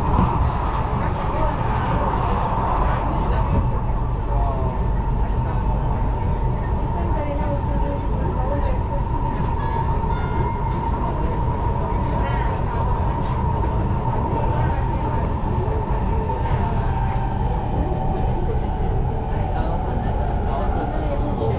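A high whine from the train's motor sounds steadily throughout.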